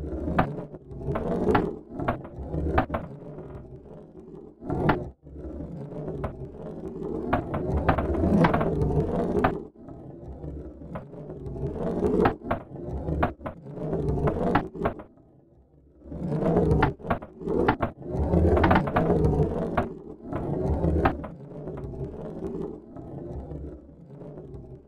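A metal ball rolls and rumbles across a wooden board.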